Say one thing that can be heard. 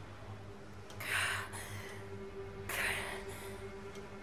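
A young woman gasps and breathes heavily.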